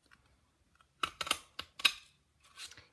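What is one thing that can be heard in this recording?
A paper punch clicks and snaps shut.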